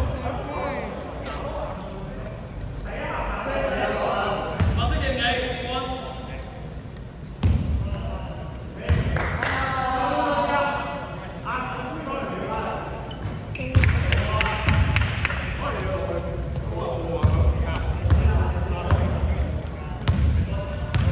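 Young men shout and call out to each other in a large echoing gym.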